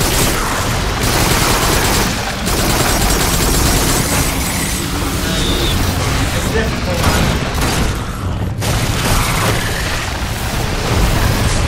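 Gunfire blasts rapidly and loudly.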